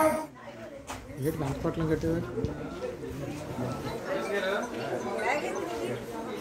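A crowd of men and women talk and murmur nearby.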